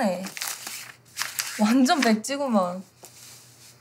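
A young man talks calmly and closely.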